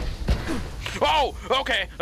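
A gun fires.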